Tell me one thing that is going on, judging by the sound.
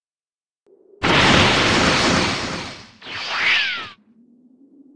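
A rushing whoosh sweeps past.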